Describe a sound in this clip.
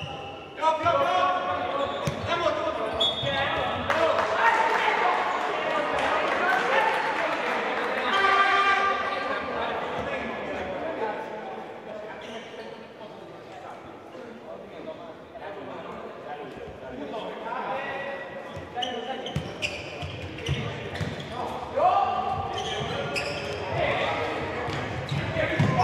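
Sneakers squeak on a hard indoor floor.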